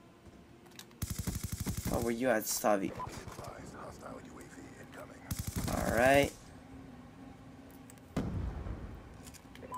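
Rapid rifle gunfire rattles in bursts.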